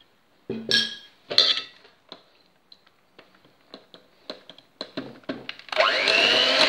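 Mixer beaters knock and clink against a glass bowl.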